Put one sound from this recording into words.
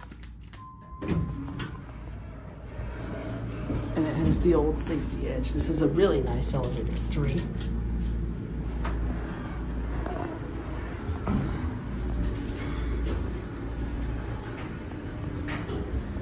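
An elevator hums steadily as it rides.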